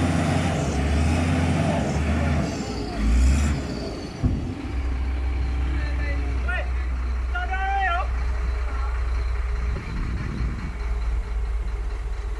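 Heavy diesel engines rumble steadily close by.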